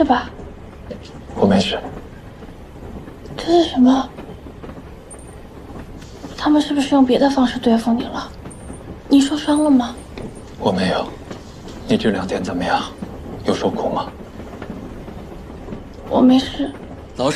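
A young woman answers quietly.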